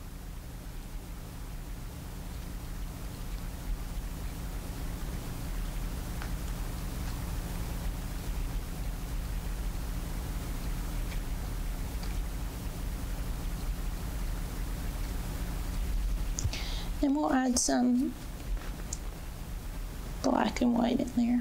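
A paintbrush dabs and strokes softly on canvas.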